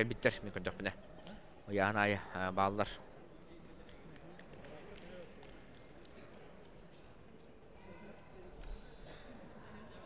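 A crowd of spectators murmurs quietly in the background.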